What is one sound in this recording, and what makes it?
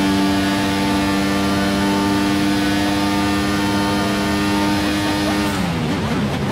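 A racing car engine screams at a high, steady pitch.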